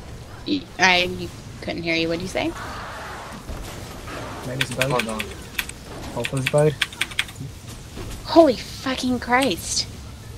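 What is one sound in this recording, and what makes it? Magic spells crackle and zap during a fight.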